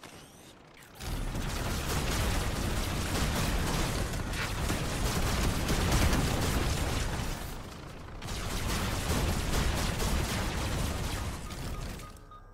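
A laser weapon fires in rapid bursts with crackling impacts.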